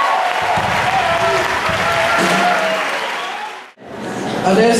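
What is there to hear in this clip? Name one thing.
A band plays music with a trumpet and electric guitar.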